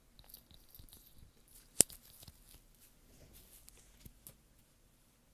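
Earphones rub and knock against a microphone close by.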